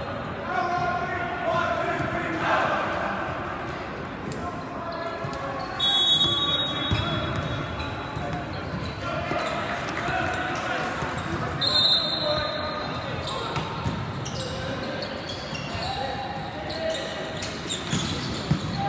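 Young men talk and call out to one another in a large echoing hall.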